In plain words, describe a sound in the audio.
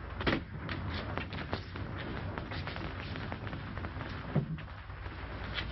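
Footsteps knock on a hard floor.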